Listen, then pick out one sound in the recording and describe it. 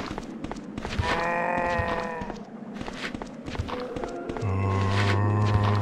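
Footsteps clank on a metal walkway.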